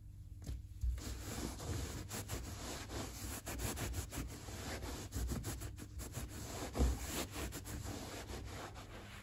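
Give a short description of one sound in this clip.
A cloth rubs over a leather shoe.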